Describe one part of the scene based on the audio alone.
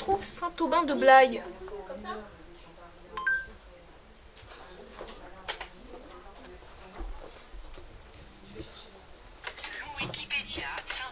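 A young woman speaks with exasperation close by.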